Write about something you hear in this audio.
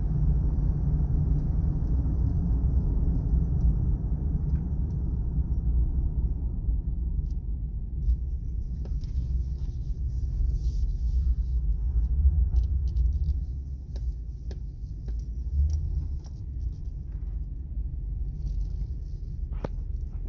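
Tyres roll over a paved road, heard from inside the car.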